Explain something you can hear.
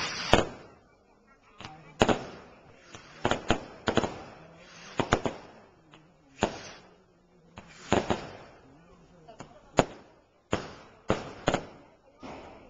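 Fireworks bang loudly, one after another, echoing away.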